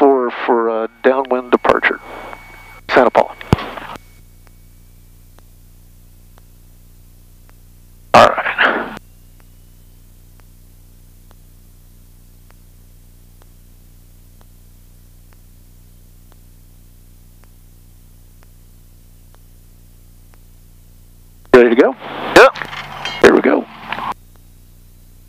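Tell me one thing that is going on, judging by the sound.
A man speaks in short bursts through a headset intercom.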